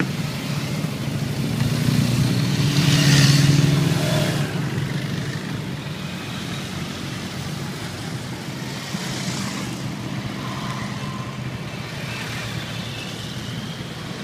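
Many motorcycle engines rumble steadily as they ride past.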